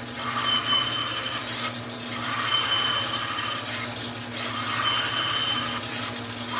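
A band saw hums steadily.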